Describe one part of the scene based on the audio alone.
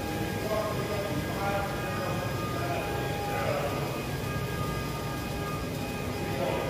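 A rotating platform motor hums steadily.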